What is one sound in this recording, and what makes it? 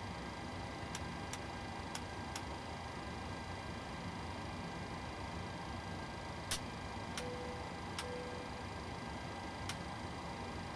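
Switches click sharply a few times.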